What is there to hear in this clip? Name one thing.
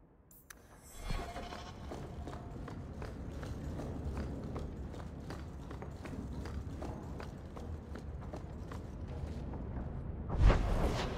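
Footsteps clack steadily on a stone floor in an echoing hall.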